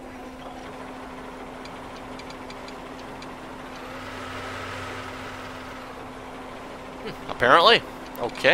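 A harvester engine hums steadily.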